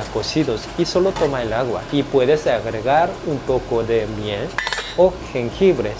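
A metal lid scrapes and clinks as it is lifted off a pot.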